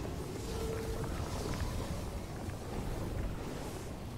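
Footsteps scuff over stone.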